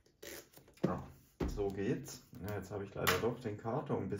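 A pen is set down on a hard desk with a light click.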